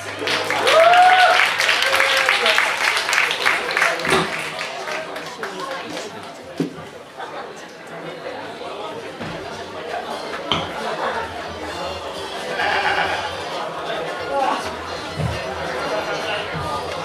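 A crowd of young people chatters in a large hall.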